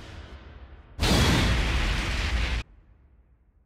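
A heavy booming crash hits and rumbles for a moment.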